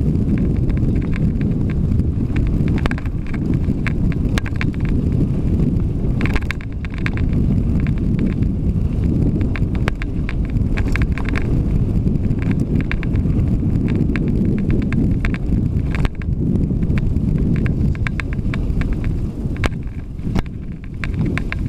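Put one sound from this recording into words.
Loose parts of a bicycle click and clatter over bumps.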